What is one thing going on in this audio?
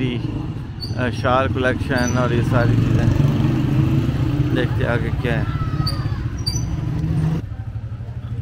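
A motorcycle engine rumbles past close by.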